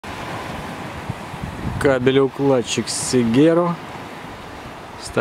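Waves wash and lap on open water.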